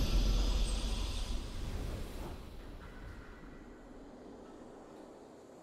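A triumphant victory fanfare from a game rings out and slowly fades away.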